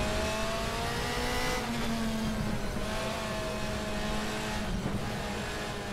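A racing car engine roars loudly, its pitch shifting as it changes gear.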